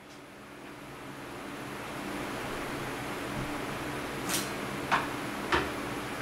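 A metal press handle clunks as it is pulled down.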